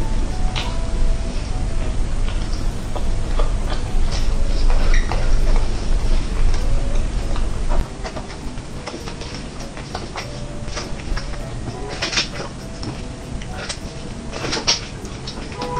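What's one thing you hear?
Plastic gloves crinkle.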